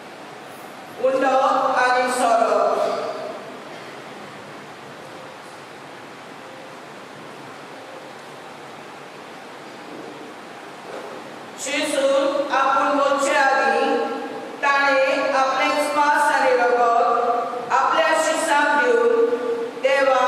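A man chants through a loudspeaker in a large echoing hall.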